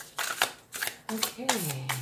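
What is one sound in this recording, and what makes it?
Playing cards rustle and tap as they are handled.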